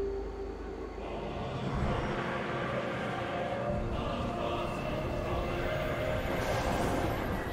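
A spaceship's engines roar steadily.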